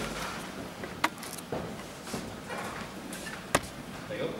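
Sharp knocks sound as equipment is bumped on a table.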